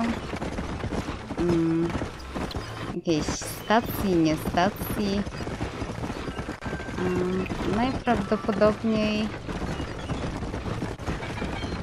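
Wagon wheels rumble and creak over a dirt track.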